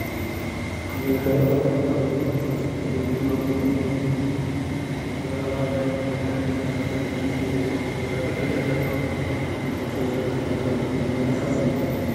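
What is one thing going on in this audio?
A man speaks over a loudspeaker in a large echoing hall.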